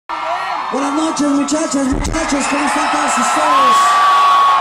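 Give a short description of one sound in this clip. A young man sings loudly through a microphone in a large echoing space.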